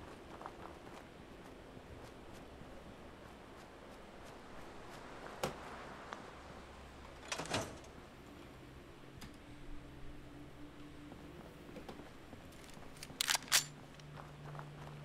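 Footsteps tread over grass and gravel.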